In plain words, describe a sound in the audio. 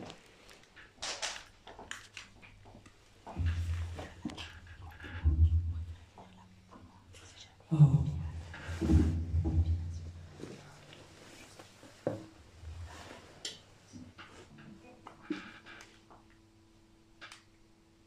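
A young person sings and murmurs into a microphone.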